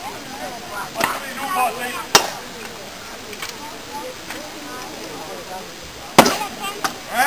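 Swords clash against shields with sharp clangs.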